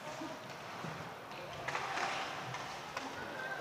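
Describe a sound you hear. Hockey sticks clack together.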